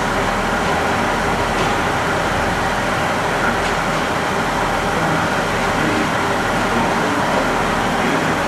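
A second train approaches slowly along the track.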